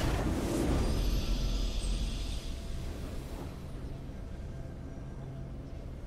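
A game fanfare plays for the win.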